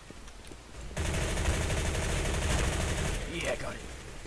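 A submachine gun fires a long, rapid burst.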